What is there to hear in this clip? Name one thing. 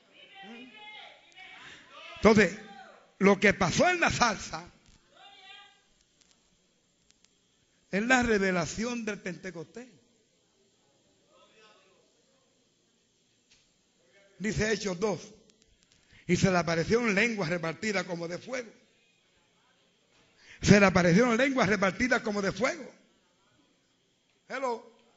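An elderly man preaches with animation through a microphone, in bursts with pauses.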